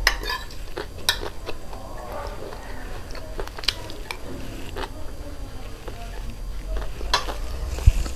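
A metal spoon clinks against a ceramic plate.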